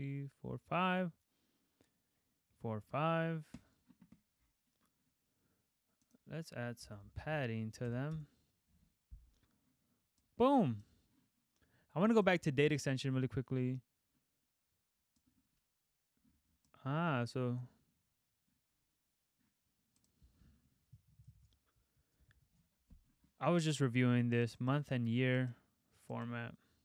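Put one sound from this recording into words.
A young man talks calmly and closely into a microphone, in short bursts with pauses.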